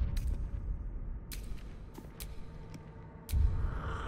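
Soft menu clicks sound.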